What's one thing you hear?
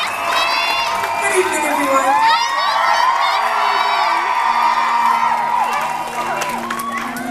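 A young woman talks into a microphone.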